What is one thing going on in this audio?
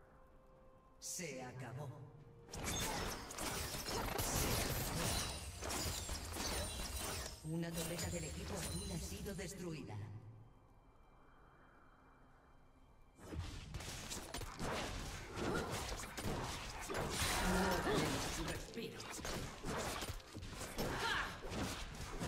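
Video game spell effects crackle and burst in a busy fight.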